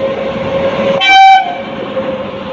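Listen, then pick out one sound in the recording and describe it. A train horn blares briefly.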